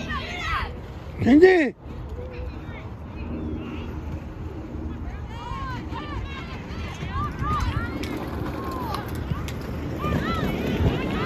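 Children shout and cheer nearby outdoors.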